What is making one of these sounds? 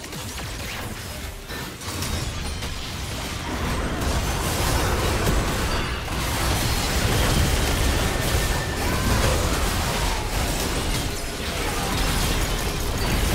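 Magic blasts and clashing effects crackle and boom in a busy video game battle.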